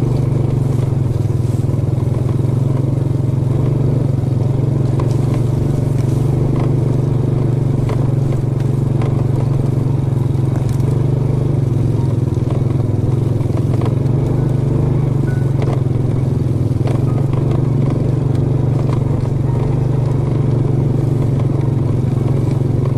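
Tall grass swishes and brushes against a moving motorbike.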